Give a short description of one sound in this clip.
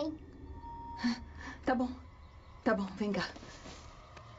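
A young woman speaks softly and warmly up close.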